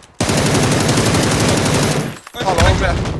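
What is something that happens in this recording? An automatic rifle fires a long rapid burst.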